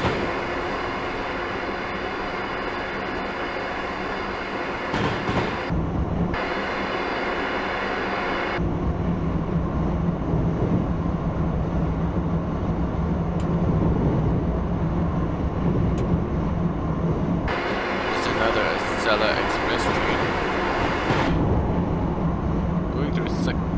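An electric train hums and rumbles steadily along the rails.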